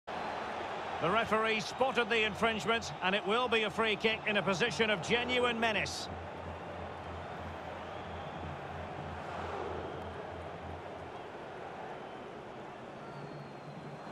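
A large stadium crowd murmurs and hums steadily.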